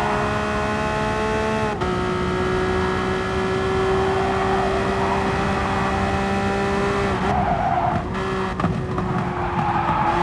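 A racing car engine roars at high revs, dropping in pitch with each gear change.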